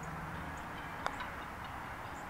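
A putter taps a golf ball softly.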